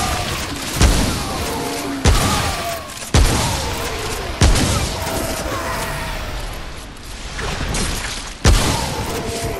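A rifle fires loud single shots that echo.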